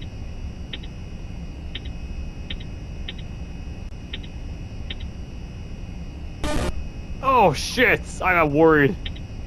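Short electronic beeps chirp at a steady pace.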